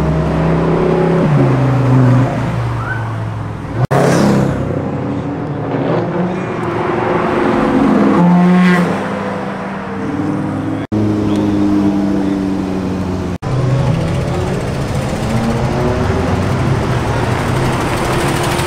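Sports car engines roar and rev loudly as they pass.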